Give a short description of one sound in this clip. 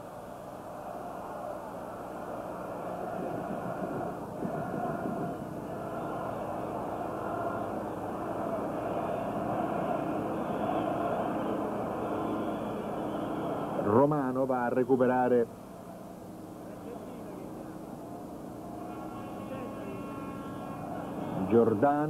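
A large stadium crowd roars and chants in the distance.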